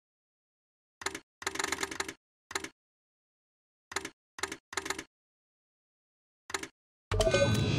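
Short electronic interface sounds blip in quick bursts.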